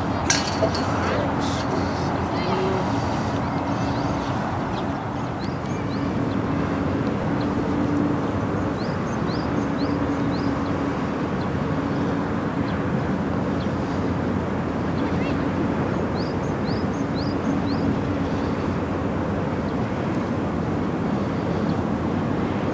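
Wind rumbles across an open outdoor field.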